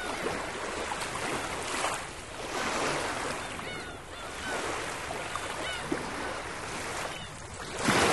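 Small waves wash onto a pebbly shore and draw back.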